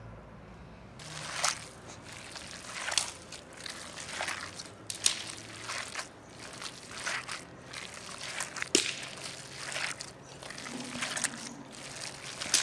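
Hands squelch and squeeze minced meat in a bowl.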